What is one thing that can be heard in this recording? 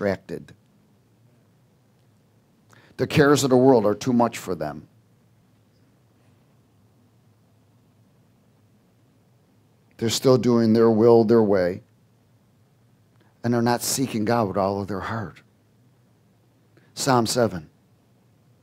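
A man speaks with animation into a microphone, with long pauses between phrases.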